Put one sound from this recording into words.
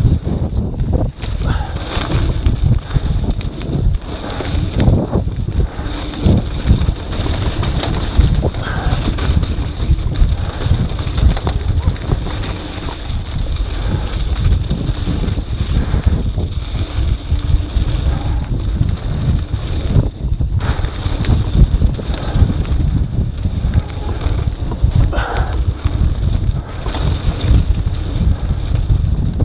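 Bike tyres crunch and roll over a loose dirt trail.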